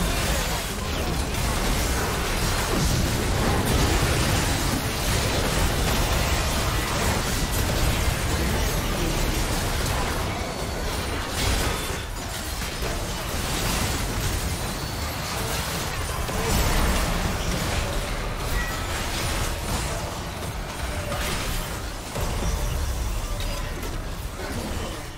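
Game spell effects crackle, whoosh and blast in a busy battle.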